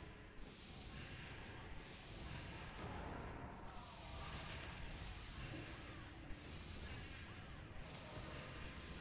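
Magic spells crackle and boom in a game battle.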